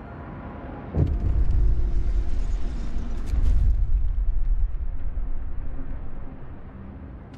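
A deep rumbling boom swells and then fades.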